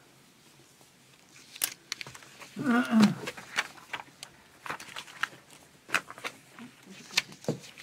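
Paper sheets rustle.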